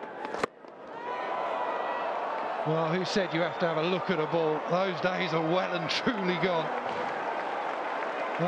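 A crowd outdoors cheers and roars.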